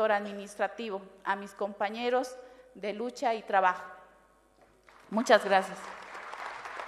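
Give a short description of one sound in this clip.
A woman speaks steadily through a microphone.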